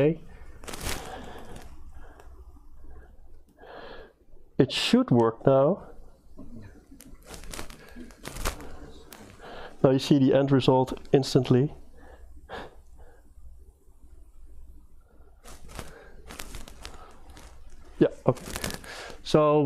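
A man talks through a microphone, haltingly and in short bursts.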